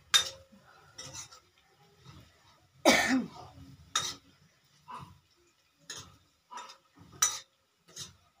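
A metal ladle scrapes and clinks against a metal pan.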